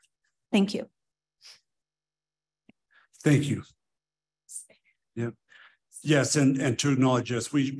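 A man speaks into a microphone on an online call.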